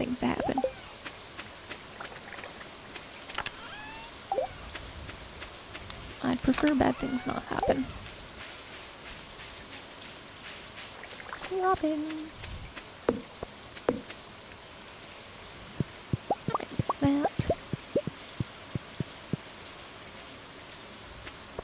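Light rain patters steadily outdoors.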